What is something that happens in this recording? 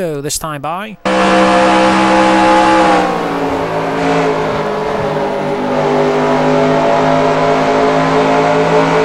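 A racing car engine drones steadily up close at high revs.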